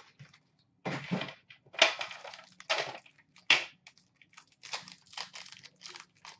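Plastic wrapping crinkles as a pack is torn open.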